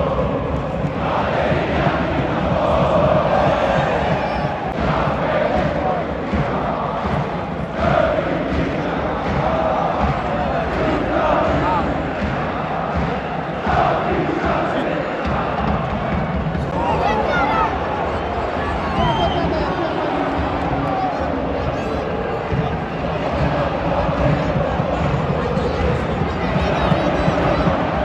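A large stadium crowd chants and sings loudly in a huge open space.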